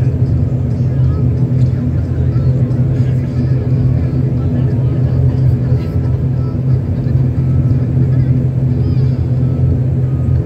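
A propeller engine drones loudly and steadily, heard from inside an aircraft cabin.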